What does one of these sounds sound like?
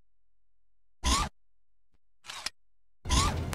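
A short menu blip sounds.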